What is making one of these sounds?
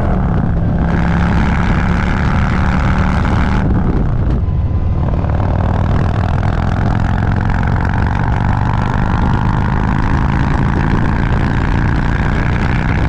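Wind roars past the microphone.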